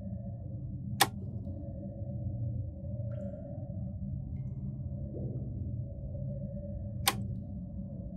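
Puzzle tiles click sharply as they slide into place.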